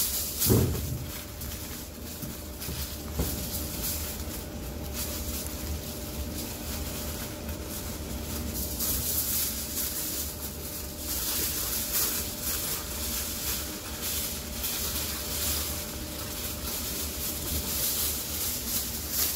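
Aluminium foil crinkles and rustles as hands fold and press it.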